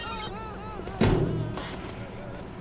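A heavy door bangs open.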